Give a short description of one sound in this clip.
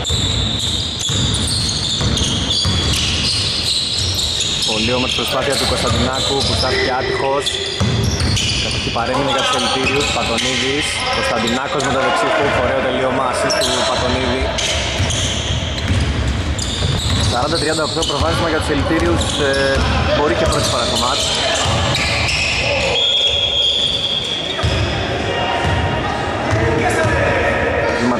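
Men call out to each other during play, in a large echoing hall.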